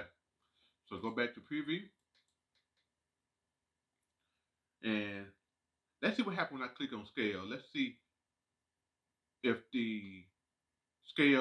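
A man talks calmly into a nearby microphone, in short bursts with pauses.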